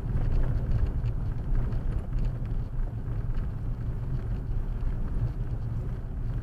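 A car engine rumbles steadily inside a moving car.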